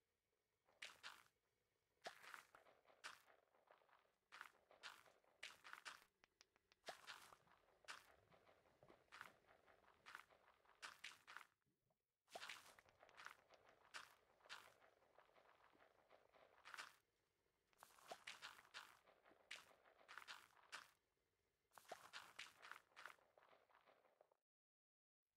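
Seeds rustle softly into a wooden composter again and again.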